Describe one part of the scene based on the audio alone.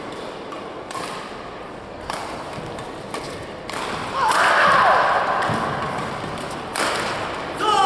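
Shuttlecocks are struck sharply by rackets in a large echoing hall.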